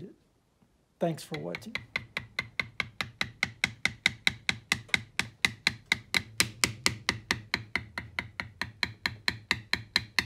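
A mallet taps rapidly and steadily on a metal stamping tool.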